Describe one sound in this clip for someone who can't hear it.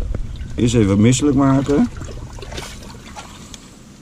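A stick scrapes and stirs in shallow water inside a drain.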